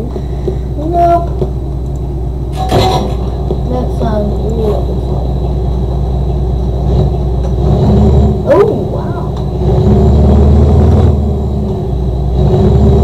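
A van engine idles and then revs as the van drives off.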